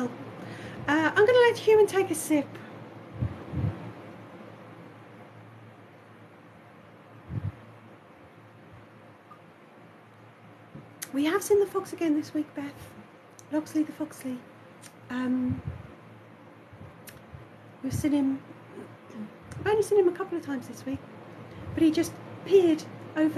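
A puppeteer speaks in a high, playful cartoon voice close to the microphone, with pauses.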